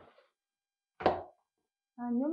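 A plastic bowl is set down on a stone counter with a knock.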